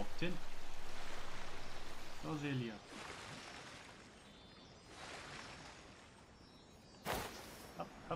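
Water swishes and splashes beneath a gliding boat.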